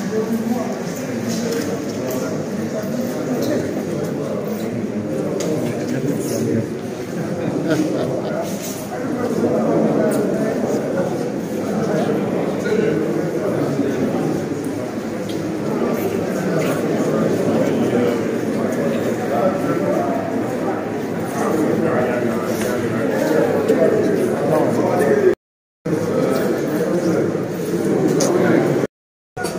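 A crowd of men and women chatter loudly all around, close by.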